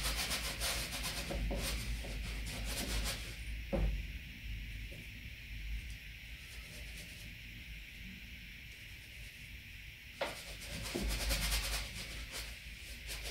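A brush scrapes and dabs paint on a canvas.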